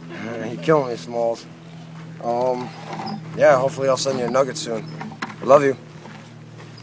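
A man talks casually, close by, outdoors.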